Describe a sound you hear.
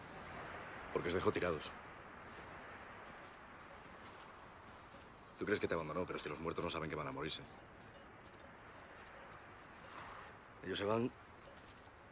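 A man speaks in a low, flat voice nearby.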